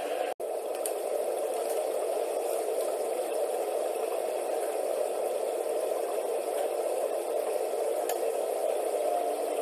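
Water sloshes inside a washing machine.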